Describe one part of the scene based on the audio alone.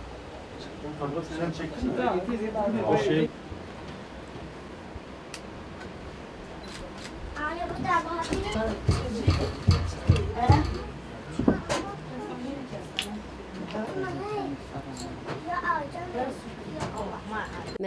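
An elderly woman talks calmly nearby.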